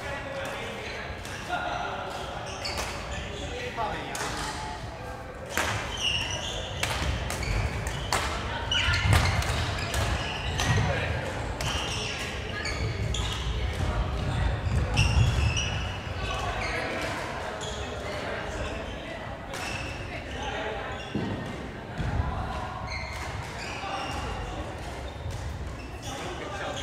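Players' voices murmur and call out across an echoing hall.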